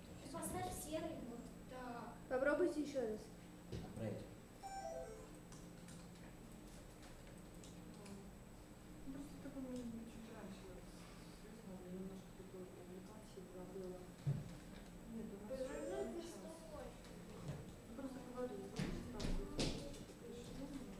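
Children talk and chatter nearby in a room.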